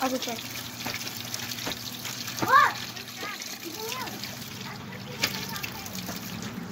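Water runs steadily from a tap into a metal sink.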